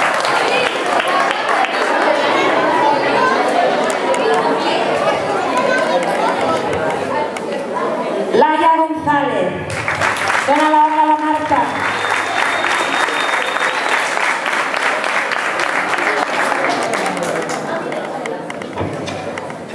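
Many children and adults chatter in a large echoing hall.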